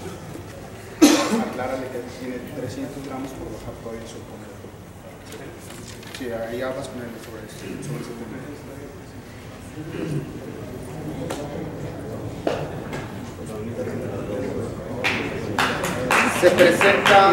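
A man announces loudly through a microphone.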